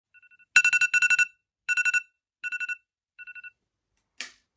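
A phone alarm beeps in quick bursts that grow quieter.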